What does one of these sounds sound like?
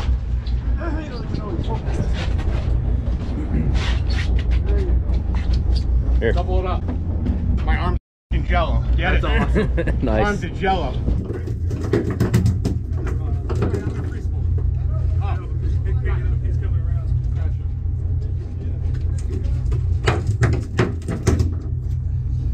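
Men talk and laugh with animation close by.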